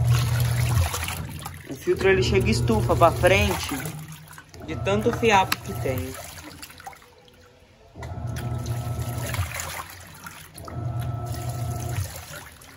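Water and laundry slosh and churn inside a washing machine.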